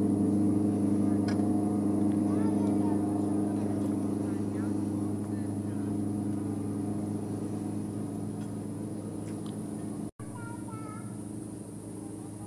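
A motorboat engine drones steadily nearby.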